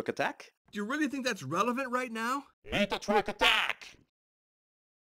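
Another young boy shouts back angrily.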